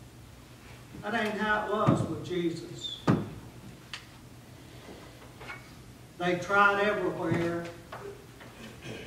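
A middle-aged man speaks calmly in a room with a slight echo.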